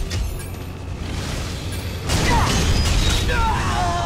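A monster roars.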